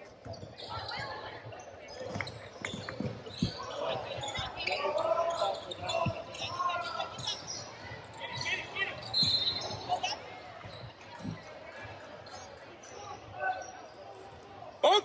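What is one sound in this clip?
Young men shout and call out to each other across an echoing hall.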